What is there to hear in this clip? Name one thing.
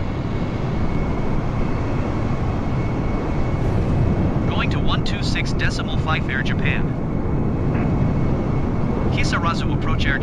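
A jet airliner's engines roar steadily in flight.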